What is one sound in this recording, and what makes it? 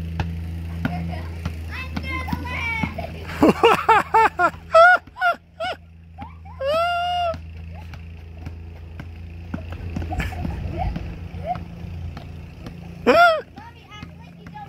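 A basketball bounces repeatedly on pavement.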